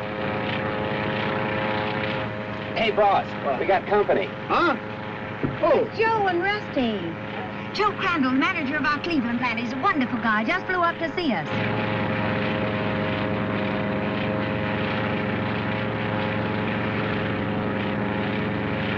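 A plane's engine drones steadily throughout.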